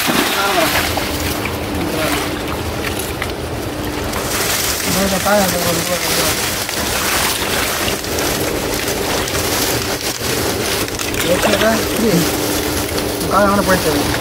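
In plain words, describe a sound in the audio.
Hands splash and squelch through shallow muddy water.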